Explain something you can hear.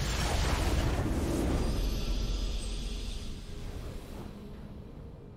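A game's victory fanfare blares loudly and fades out.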